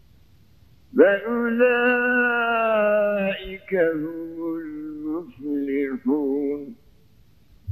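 An elderly man chants in a long, wavering voice through a microphone.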